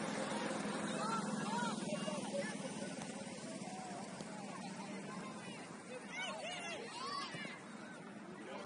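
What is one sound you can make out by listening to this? Young players shout to each other from far off across an open field.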